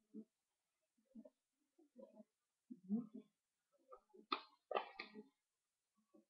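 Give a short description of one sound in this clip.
Paper rustles and flaps as a book is handled.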